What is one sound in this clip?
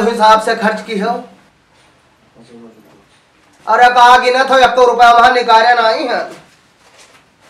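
A middle-aged man speaks loudly and with animation in a high, shrill voice, close by.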